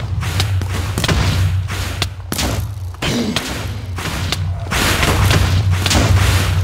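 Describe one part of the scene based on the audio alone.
Sword blows land on a monster with quick sharp hits.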